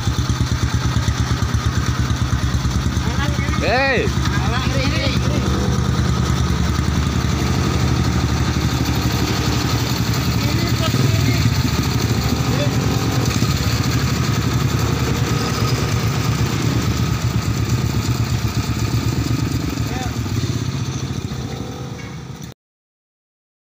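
A motorcycle engine idles close by with a fast, steady chugging.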